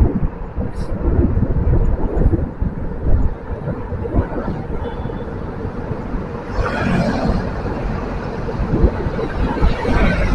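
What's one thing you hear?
Wind buffets loudly against a moving car.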